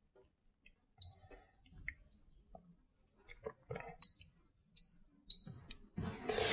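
A marker squeaks and taps on a glass board.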